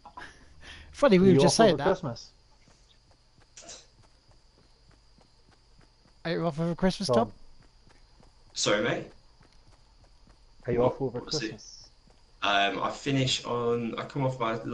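A man talks casually into a nearby microphone, in short bursts.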